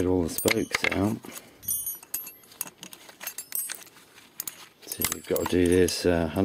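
Metal parts clink and scrape as they are handled.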